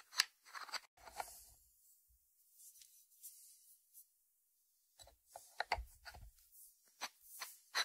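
A ceramic dish knocks and slides on a wooden board.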